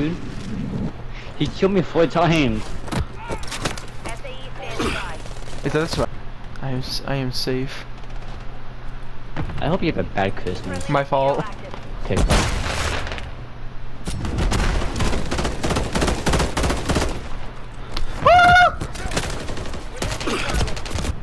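Rapid gunfire crackles in sharp bursts.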